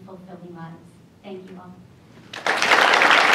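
A woman speaks briefly into a microphone.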